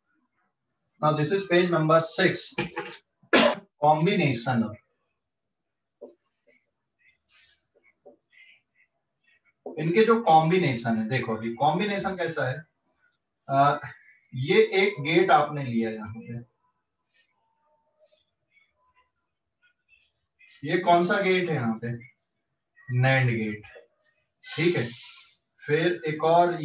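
A man speaks calmly and clearly close by, explaining in bursts with pauses.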